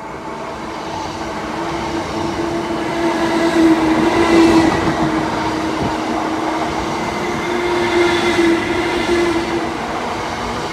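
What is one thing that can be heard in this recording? Train wheels hum and whine with a steady tone.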